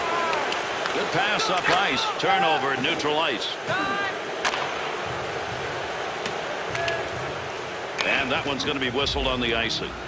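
A hockey puck clacks against sticks.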